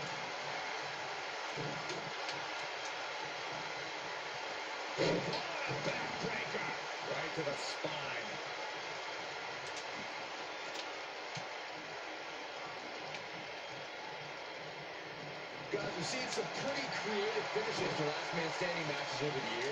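A crowd roars and cheers through a television speaker.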